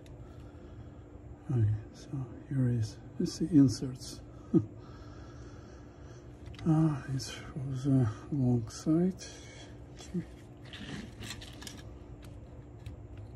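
Small metal parts click and rattle as hands handle them.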